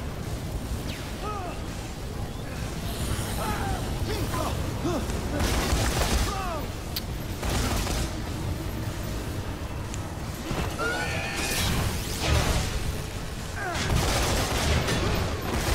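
Zombies groan and moan.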